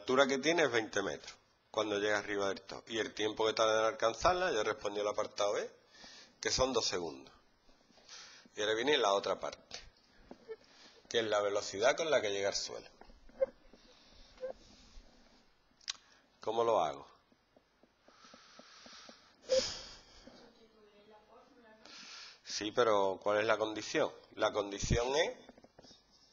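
A man explains calmly, close by.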